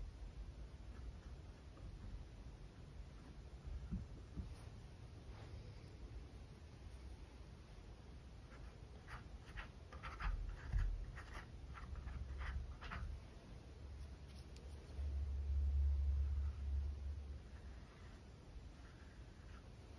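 A paintbrush dabs and taps softly on canvas.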